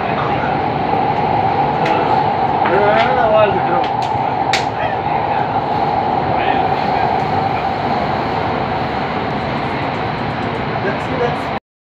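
A ride simulator hums steadily.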